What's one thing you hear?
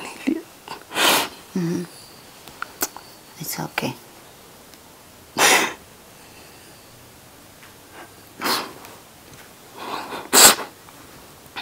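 A young woman sniffles and sobs.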